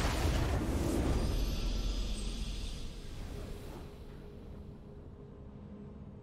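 A triumphant victory fanfare swells and fades.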